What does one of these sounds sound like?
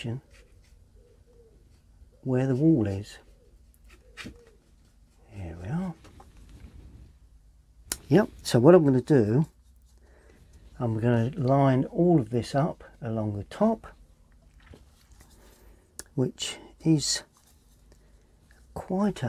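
An elderly man speaks calmly and close by, pausing often.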